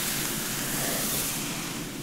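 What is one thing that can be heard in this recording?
A comb scratches softly through hair.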